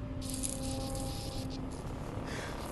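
Sparks hiss and crackle.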